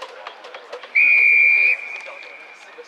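A referee blows a sharp whistle blast.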